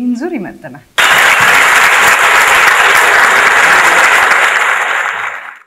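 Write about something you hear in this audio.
A large audience applauds and cheers loudly.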